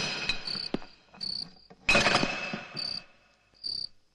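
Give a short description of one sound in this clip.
A gun fires with sharp, loud bangs.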